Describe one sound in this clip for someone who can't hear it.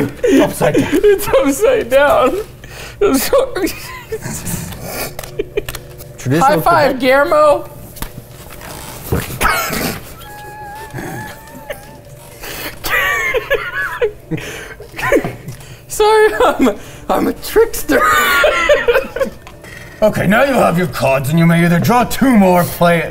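Several men talk and laugh together indoors.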